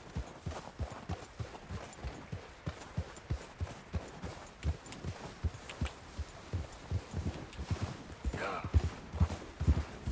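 Hooves thud steadily in deep snow at a trot.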